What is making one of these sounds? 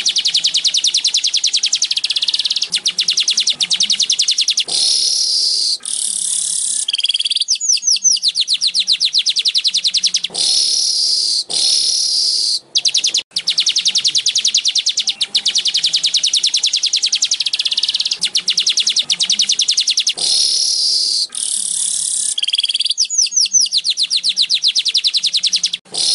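A small bird sings a fast, high buzzing and chattering song close by.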